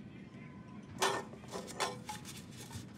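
Metal cans clink as they are picked up.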